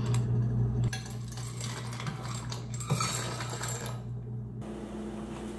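Water runs from a dispenser into a pot.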